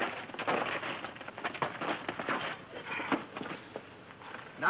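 Blows and scuffling sound as two men fight.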